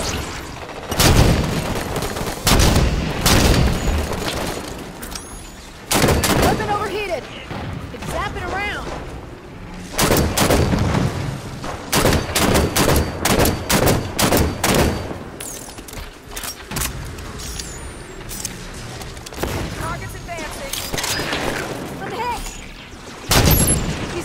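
Rifle shots boom and crack loudly, again and again.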